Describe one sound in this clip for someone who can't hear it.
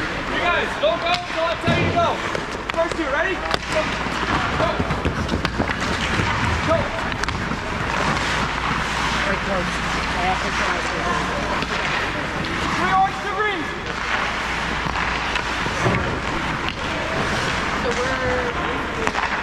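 Skate blades scrape across the ice.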